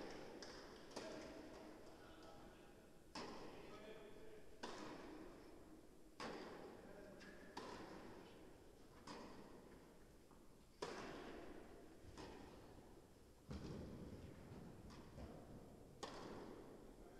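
Tennis balls are struck with rackets, echoing through a large hall.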